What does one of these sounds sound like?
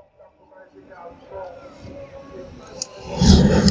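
A small fire flares up with a loud roaring whoosh.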